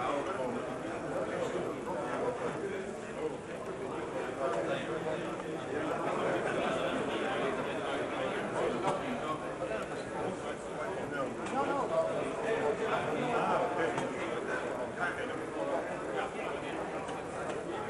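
A crowd of spectators murmurs and chatters.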